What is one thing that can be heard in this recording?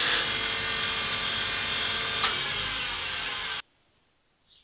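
A grinding wheel whirs loudly against metal.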